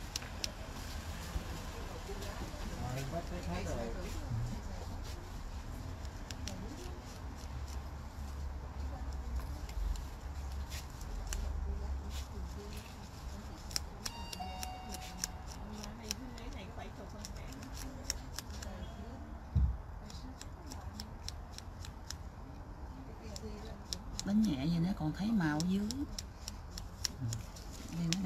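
Fingertips tap and rub lightly against a fake nail.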